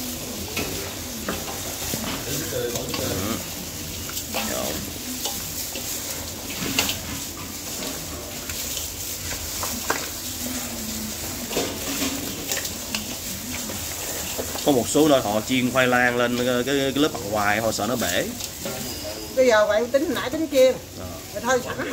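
Gloved hands squelch and squish through wet, spiced meat in a metal bowl.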